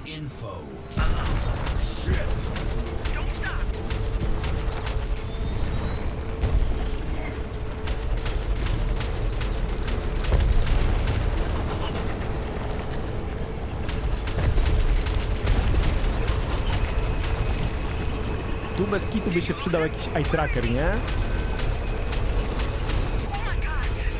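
A hover bike's engine roars loudly at speed.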